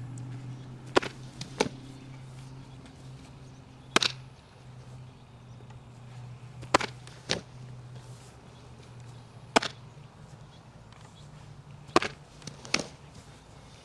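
A softball thuds into a catcher's mitt.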